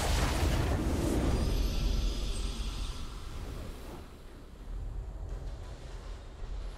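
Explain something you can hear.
A triumphant game victory fanfare swells and then fades.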